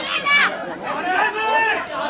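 A young woman shouts loudly.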